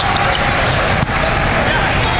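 A volleyball is struck with a loud smack.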